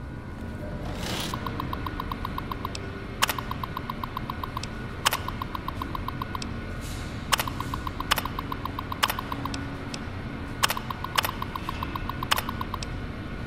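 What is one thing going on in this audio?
A computer terminal clicks and chirps as text is printed.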